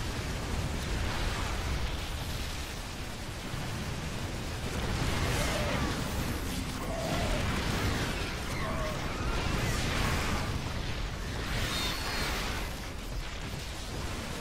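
Game battle sounds of gunfire and explosions rattle on.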